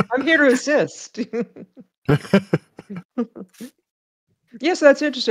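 A woman laughs over an online call.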